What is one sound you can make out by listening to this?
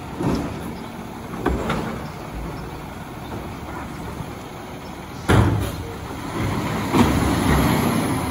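A garbage truck's engine rumbles as the truck slowly comes closer.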